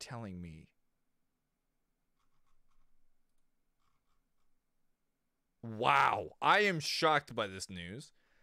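A man speaks close into a microphone, with pauses.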